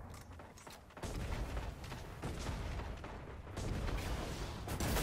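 An explosion booms up close.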